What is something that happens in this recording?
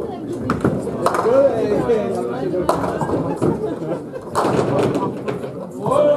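Pins clatter as a ball strikes them.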